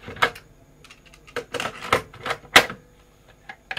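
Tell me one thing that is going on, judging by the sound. A cassette deck's door clacks open and shut.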